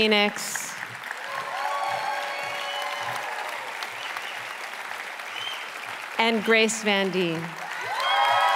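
A woman speaks into a microphone in a large hall.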